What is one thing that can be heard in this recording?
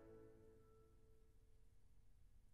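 A string ensemble's final chord rings and fades away.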